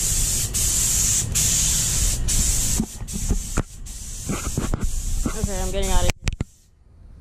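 A spray gun hisses steadily with compressed air.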